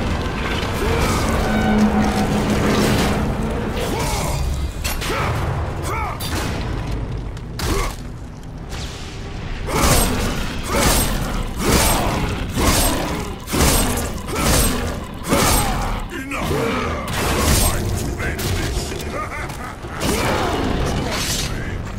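A huge creature growls and roars.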